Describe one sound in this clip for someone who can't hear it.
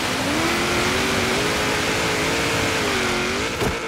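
Water splashes loudly under a car's wheels.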